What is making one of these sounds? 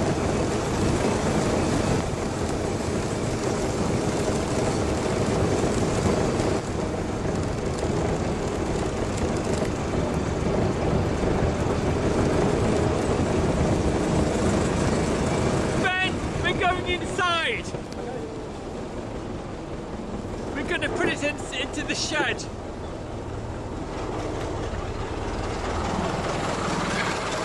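An old engine rumbles and chugs steadily as a vehicle drives along.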